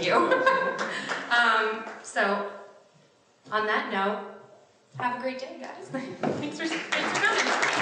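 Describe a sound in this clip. A young woman speaks calmly into a microphone in a large room.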